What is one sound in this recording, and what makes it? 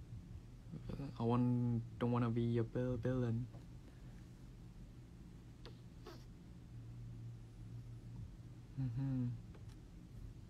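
A young man speaks softly and casually, close to a microphone.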